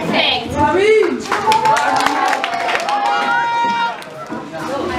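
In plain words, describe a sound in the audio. A group of children sing together.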